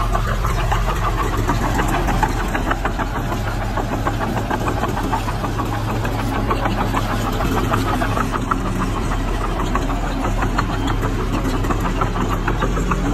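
Metal crawler tracks clank and squeal.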